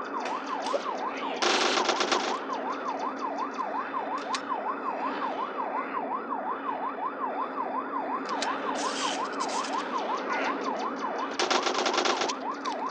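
A police siren wails rapidly and steadily throughout.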